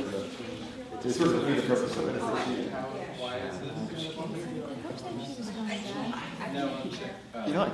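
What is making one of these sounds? A young man speaks close by.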